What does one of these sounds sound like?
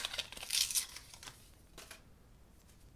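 A paper packet rustles and tears close by.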